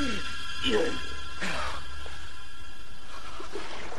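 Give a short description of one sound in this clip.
A man groans in pain.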